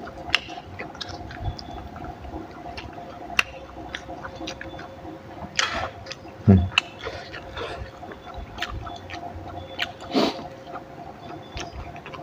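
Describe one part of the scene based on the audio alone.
A woman chews and smacks her lips loudly close to a microphone.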